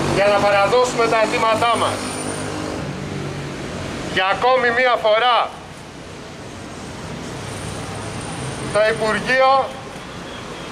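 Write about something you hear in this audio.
A man speaks firmly into a microphone close by, in short bursts.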